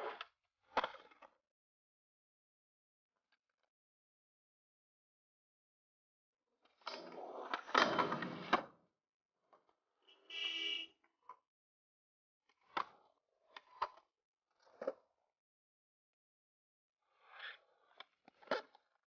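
A skateboard snaps and lands with sharp clacks on concrete.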